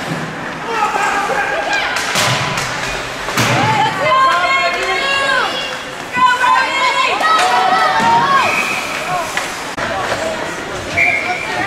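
Spectators shout and cheer in a large echoing rink.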